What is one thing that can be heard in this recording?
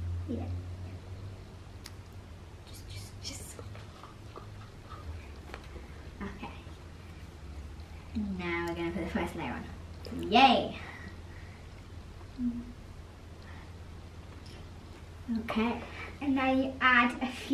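Two young girls talk with animation close by.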